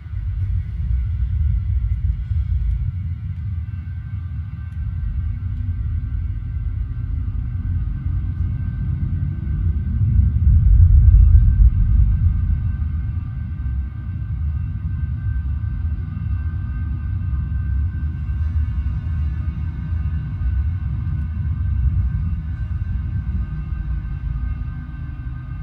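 A spaceship engine rumbles with a deep, steady roar that swells for a moment.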